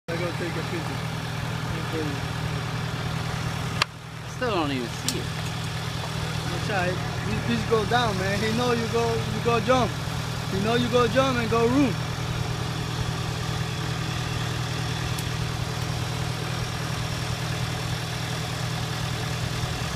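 An excavator engine idles steadily nearby.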